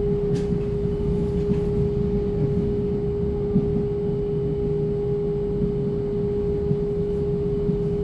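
A train's motor hums with a steady high whine.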